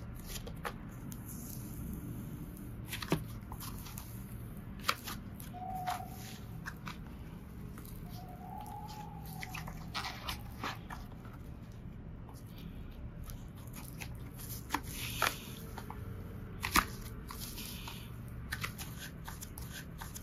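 Hands squish and squeeze soft clay, with sticky crackles and pops.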